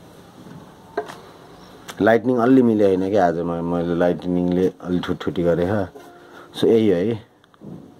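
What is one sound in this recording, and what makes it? A wooden ukulele bumps and knocks as it is handled.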